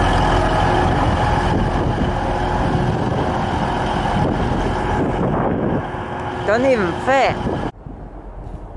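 A diesel train engine rumbles loudly as it pulls away.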